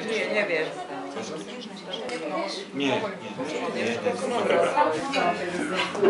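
A man talks close by, in a lively way.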